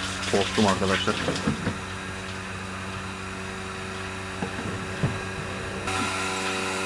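Water gushes from a hose into a plastic can.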